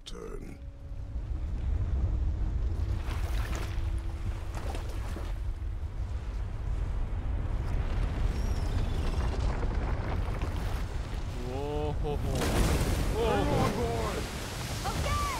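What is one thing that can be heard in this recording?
Rough water churns and roars around a boat.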